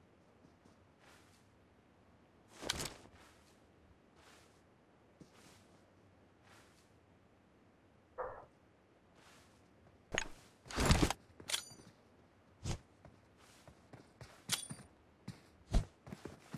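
Grass rustles in short, regular bursts as someone crawls through it.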